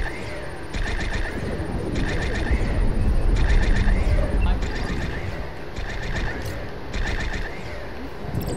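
Short electronic chirps sound in quick bursts as buttons are pressed.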